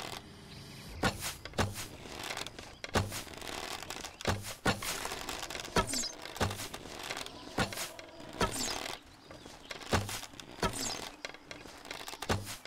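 A bowstring twangs as arrows are shot, again and again.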